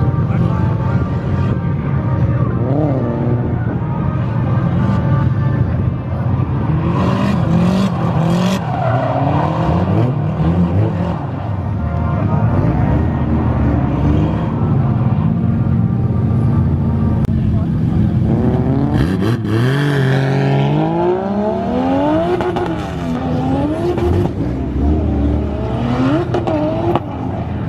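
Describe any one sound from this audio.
A car engine revs hard and roars up and down.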